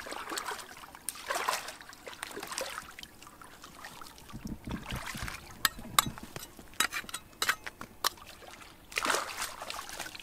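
A metal trowel scrapes and taps against rock.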